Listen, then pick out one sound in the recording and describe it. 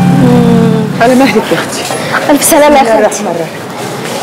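A woman speaks in a distressed, crying voice nearby.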